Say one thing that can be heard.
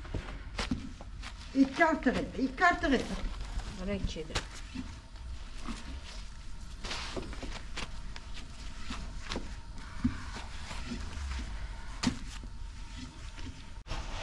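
Dry flatbread rustles and crackles as hands fold it.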